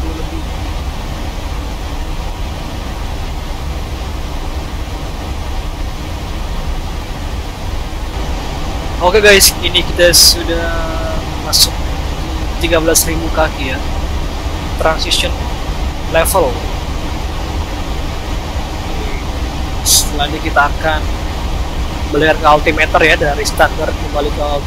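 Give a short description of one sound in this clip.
A steady low engine drone fills an aircraft cabin.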